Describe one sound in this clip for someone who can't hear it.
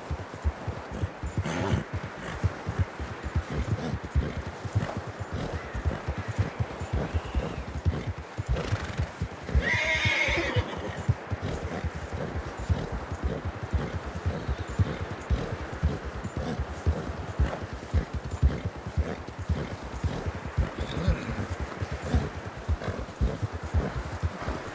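Horse hooves thud quickly through deep snow.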